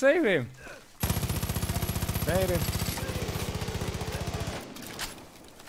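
An automatic rifle fires a long, rapid burst.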